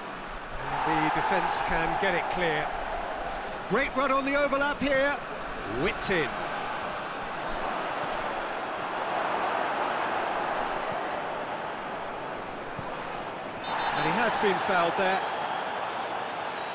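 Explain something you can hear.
A large crowd cheers and roars steadily in a big stadium.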